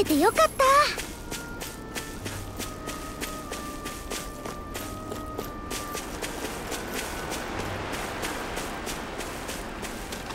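Footsteps crunch steadily through dry grass.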